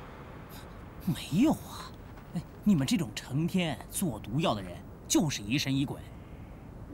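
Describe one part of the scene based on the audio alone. Another young man speaks with animation close by.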